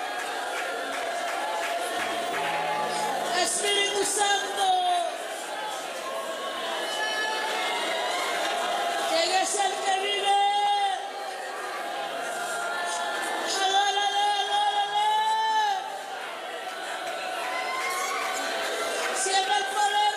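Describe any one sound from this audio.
A band plays music through loudspeakers in a large echoing hall.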